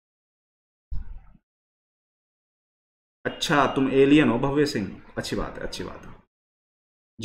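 A young man speaks calmly and close to a microphone.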